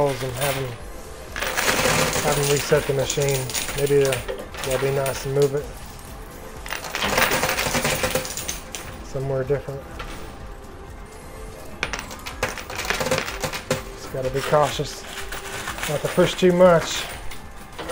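Metal coins clink and rattle as a pusher shoves them along.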